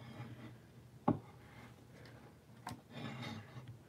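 A small figurine knocks and scrapes against a hard surface.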